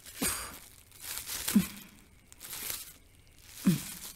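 Plastic wrapping rustles and crinkles as it is torn off.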